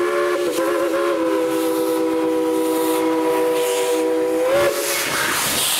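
A steam locomotive's whistle blows loud and steady.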